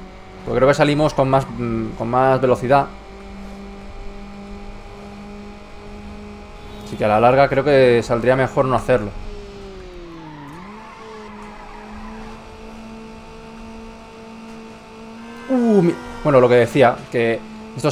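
A car engine hums steadily at high speed, dipping briefly as the gear shifts.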